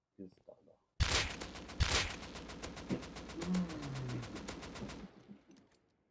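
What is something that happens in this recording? A rifle fires in a rapid burst of sharp shots.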